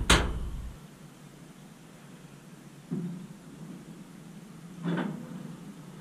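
A metal rack clatters as it slides out of a small oven.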